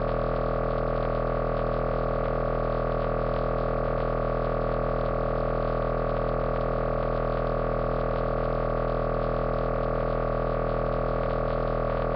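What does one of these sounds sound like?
A synthesizer plays a steady, buzzing drone of layered tones.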